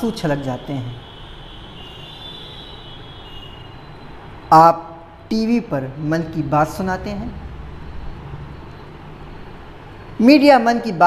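A young man speaks calmly and closely into a microphone, with pauses.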